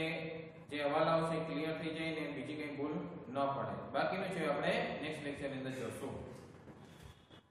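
A young man speaks calmly and clearly, close to a microphone.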